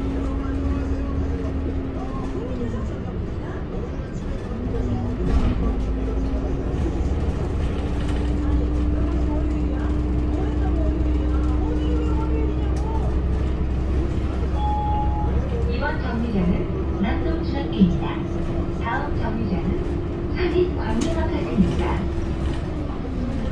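A bus engine drones steadily while driving.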